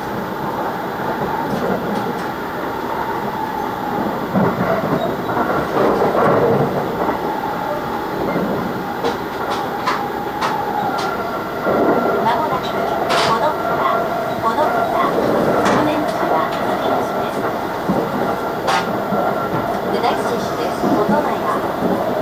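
A freight train rolls past close by with a loud, rushing roar.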